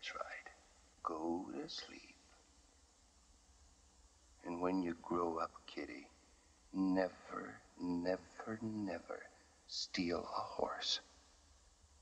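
A man speaks in a low, tired, rough voice close by.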